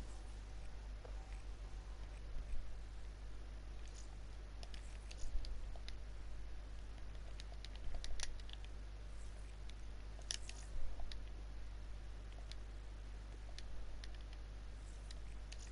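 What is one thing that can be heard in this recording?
Short menu clicks tick as options are selected.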